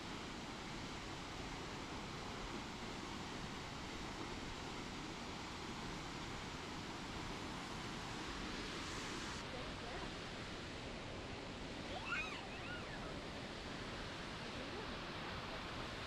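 A waterfall roars steadily nearby.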